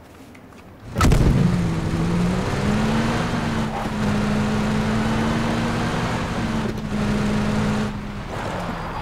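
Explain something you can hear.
A car engine starts and runs steadily as a vehicle drives over rough ground.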